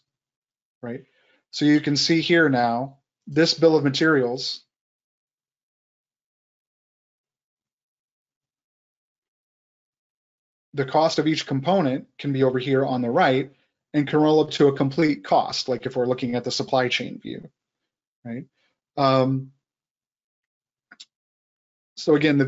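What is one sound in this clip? A man talks calmly into a close microphone, with pauses.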